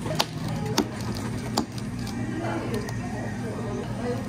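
Plastic cups knock and tap as they are set down.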